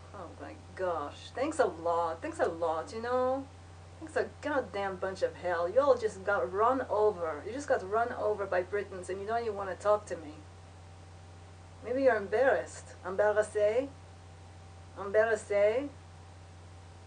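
A young woman talks calmly and close by, with pauses.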